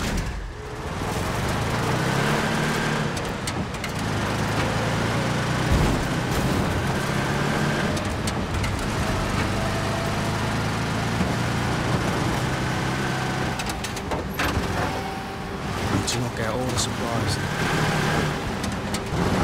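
Tyres crunch and rattle over a rough dirt track.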